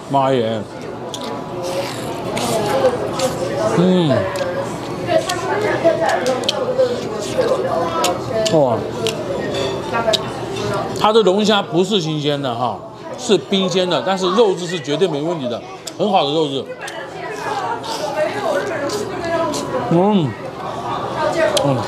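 A young man chews and smacks his lips while eating.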